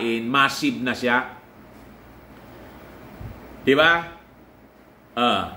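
A middle-aged man speaks calmly and close by, with pauses.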